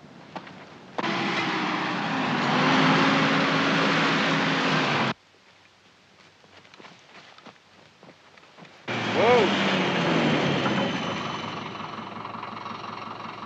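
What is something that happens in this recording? A vehicle's engine rumbles as it drives over rough ground.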